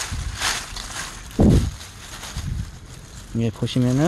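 A hand scrapes across gritty soil.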